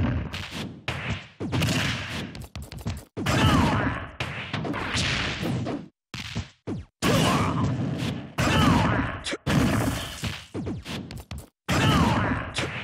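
Quick whooshes sweep through the air as blows are thrown.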